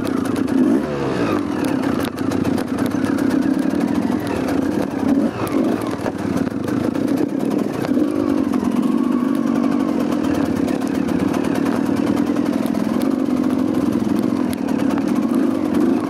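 A motorcycle engine rumbles and revs unevenly up close.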